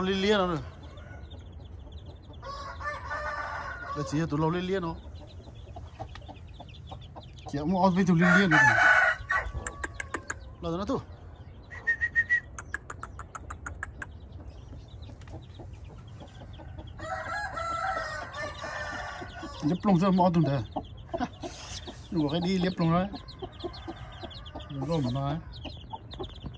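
A rooster crows loudly several times nearby.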